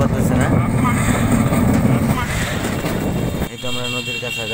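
A motor rickshaw engine rattles and drones while driving.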